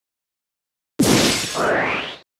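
A bright magical whoosh swells with a rising shimmer.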